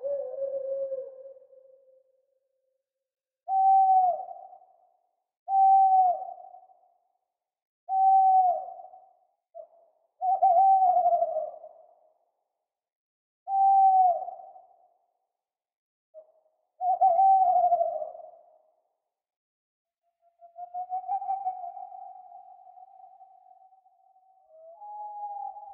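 An owl hoots again and again, with short pauses in between.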